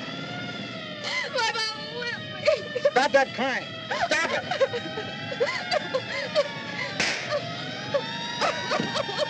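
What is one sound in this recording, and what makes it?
A young woman sobs and cries up close.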